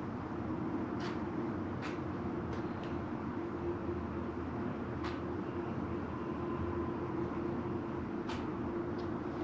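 A palette knife scrapes and taps on a plate now and then.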